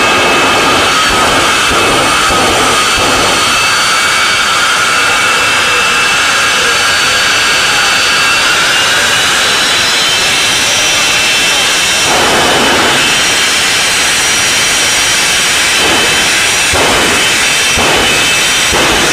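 A race car engine roars loudly.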